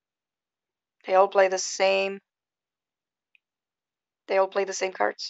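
A woman speaks calmly and close to a phone microphone, in short bursts.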